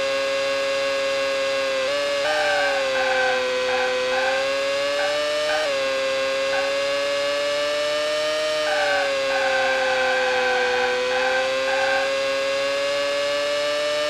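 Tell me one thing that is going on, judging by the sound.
A racing car engine whines steadily at high revs, its pitch shifting with gear changes.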